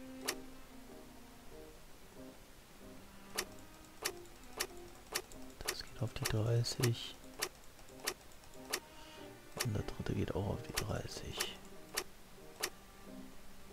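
Metal dials click as they turn, one notch at a time.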